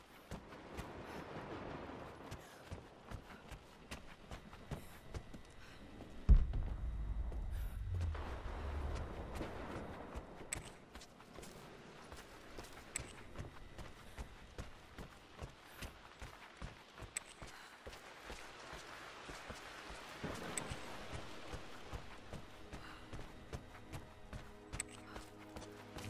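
Footsteps walk steadily across a hard floor indoors.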